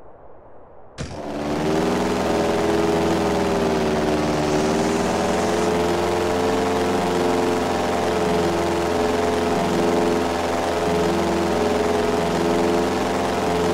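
A small propeller plane's engine drones steadily as it flies.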